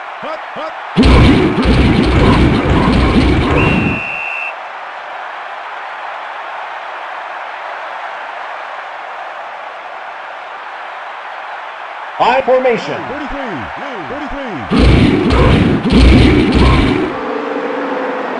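Football players crash together in a tackle.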